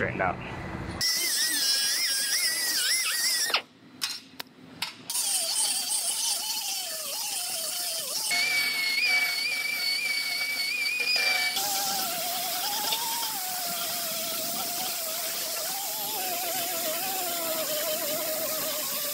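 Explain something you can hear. A high-speed grinder whines against metal, its pitch wavering up and down.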